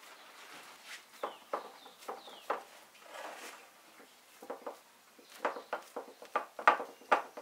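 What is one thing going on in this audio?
Hands pat and press soft dough in a metal pan.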